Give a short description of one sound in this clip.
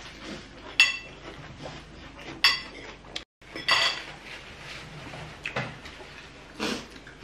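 Crispy food crunches loudly as people bite and chew.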